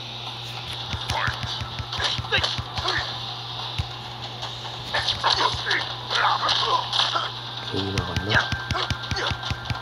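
Game fighters land punches and kicks with heavy thuds.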